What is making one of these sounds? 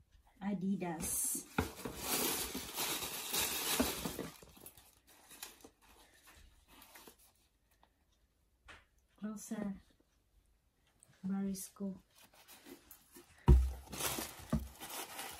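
Tissue paper rustles and crinkles as shoes are unpacked from a box.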